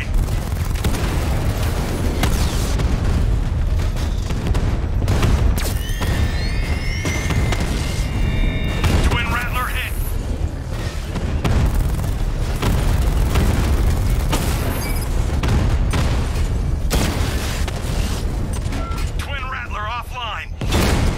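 Blasts and gunfire crack and boom repeatedly.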